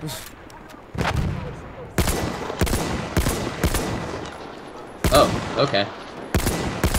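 Rifle shots crack out one after another.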